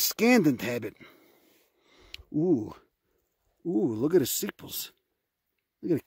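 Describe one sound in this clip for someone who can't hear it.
Dry grass rustles softly under a hand.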